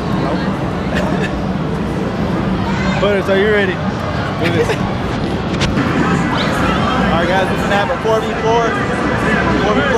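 A crowd murmurs in a large, noisy hall.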